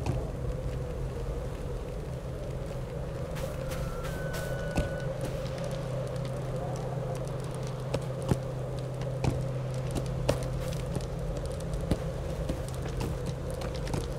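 Footsteps tread on stone paving.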